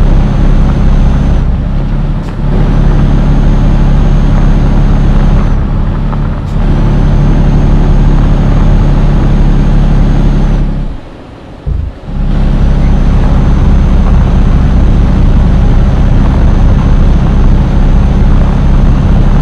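A heavy diesel truck engine drones under load.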